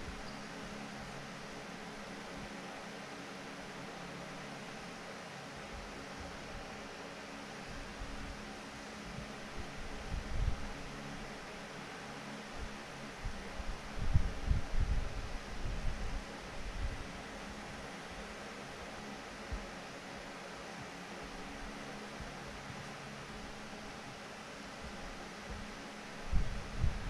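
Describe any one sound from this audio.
A large crowd murmurs softly in a big echoing hall.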